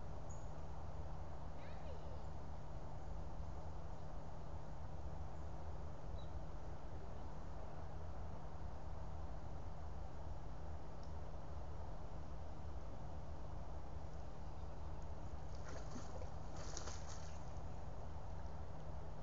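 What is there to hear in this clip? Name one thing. Water pours steadily into a pond.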